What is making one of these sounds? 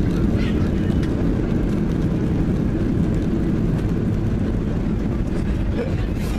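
A jet airliner's engines roar loudly as it rolls down a runway.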